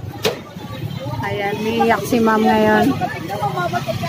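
A woman talks loudly and with animation nearby.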